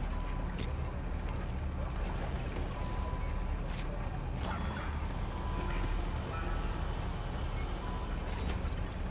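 A short electronic beep sounds about every two and a half seconds.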